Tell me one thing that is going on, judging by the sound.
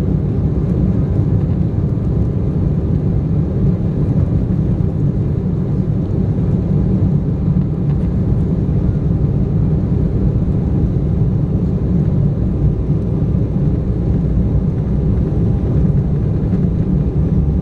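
Jet engines roar steadily from inside a plane cabin.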